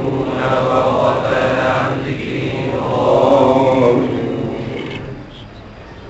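An elderly man speaks calmly and steadily.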